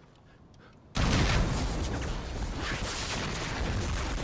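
An explosion booms with a loud roar.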